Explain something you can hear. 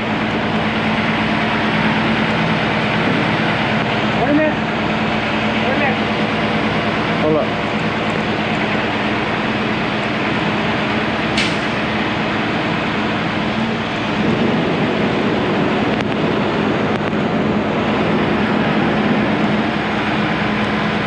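A heavy engine rumbles steadily nearby.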